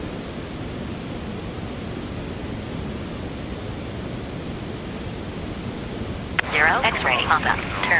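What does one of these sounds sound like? A jet engine drones steadily inside an aircraft cabin.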